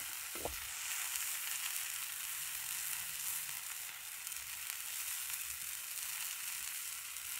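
Batter sizzles softly in a hot pan.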